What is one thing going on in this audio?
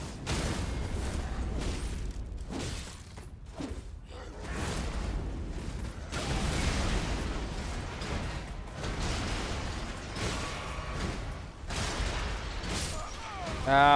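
Swords clash and slash with heavy metallic hits.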